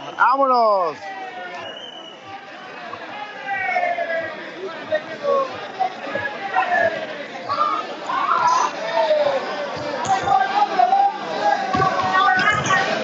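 A crowd of young spectators chatters and shouts in an echoing hall.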